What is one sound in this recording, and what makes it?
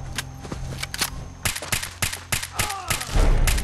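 A rifle fires a burst of sharp, rapid shots.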